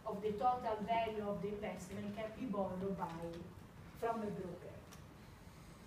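A woman lectures with animation in a large room, slightly far off.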